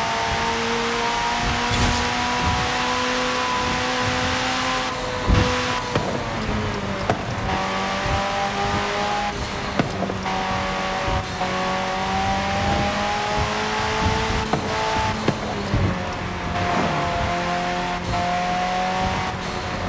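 A high-revving car engine roars steadily, shifting gears.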